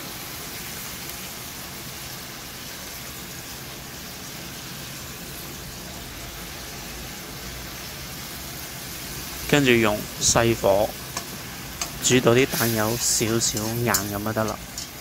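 Food sizzles softly in a hot pan.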